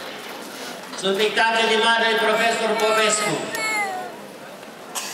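A man chants a hymn over a loudspeaker outdoors.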